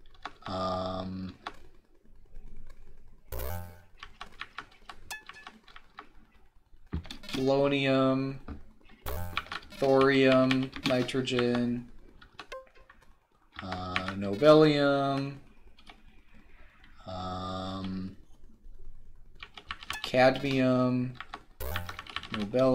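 Short electronic game tones sound in bursts every few seconds.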